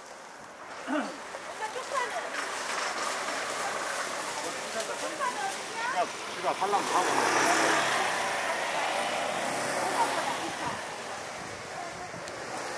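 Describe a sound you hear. Voices of people murmur and chatter outdoors.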